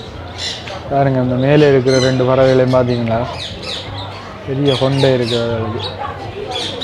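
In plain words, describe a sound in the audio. A cockatiel whistles a long warbling call.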